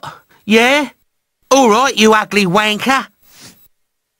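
A cartoon man speaks with animation.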